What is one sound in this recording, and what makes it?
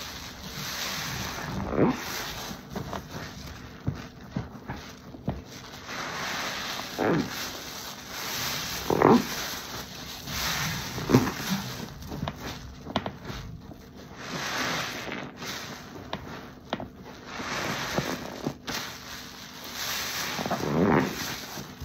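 Soapy water sloshes and drips as a sponge is squeezed in a basin.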